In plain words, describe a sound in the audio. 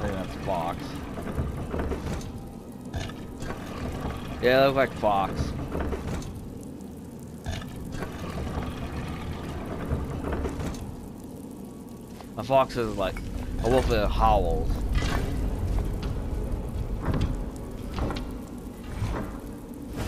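Heavy stone rings grind and clunk as they turn.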